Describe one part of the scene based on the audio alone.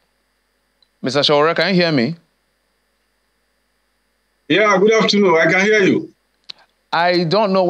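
A man speaks clearly into a close microphone, in short bursts with pauses.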